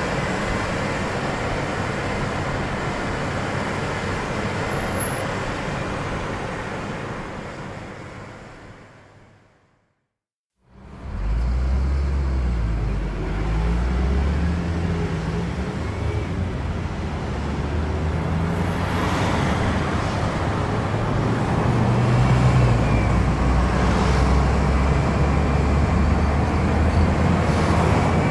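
A car engine hums and tyres roll steadily on the road.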